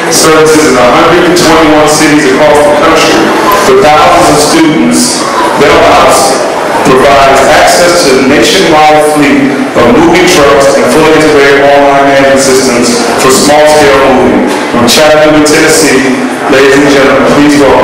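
A man speaks with animation through a loudspeaker in a large hall.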